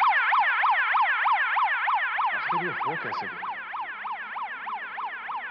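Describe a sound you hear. A siren wails rapidly up and down from a loudspeaker close by and slowly fades.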